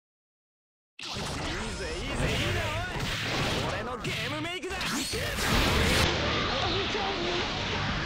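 Magic spells crackle and burst in a fierce battle.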